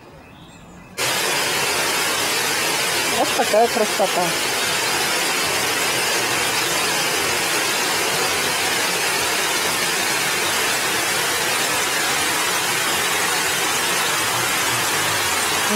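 Water pours over a weir with a steady roar.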